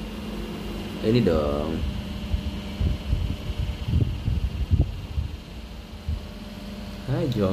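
An elderly man speaks briefly through an online call.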